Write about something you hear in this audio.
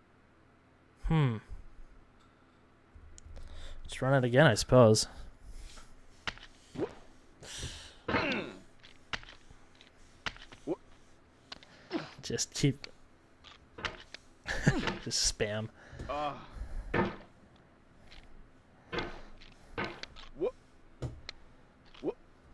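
A young man talks and exclaims with animation close to a microphone.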